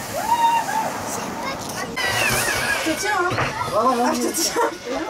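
Young children squeal and shout excitedly nearby.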